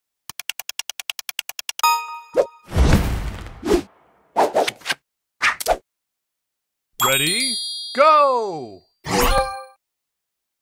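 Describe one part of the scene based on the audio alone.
Game sound effects chime and whoosh as a match begins.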